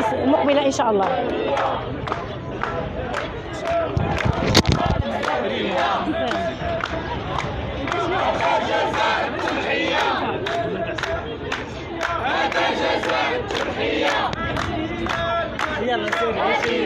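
A crowd of men and women chants slogans in unison outdoors.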